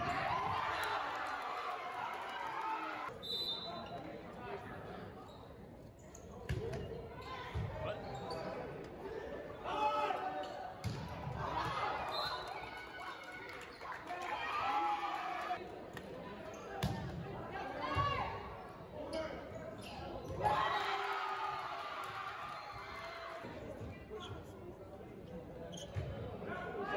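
Young players shout and call to each other across the court.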